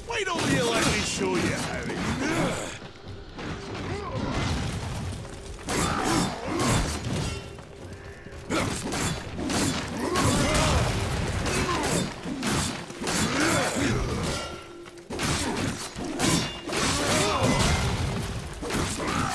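Metal weapons clash and strike repeatedly in a fight.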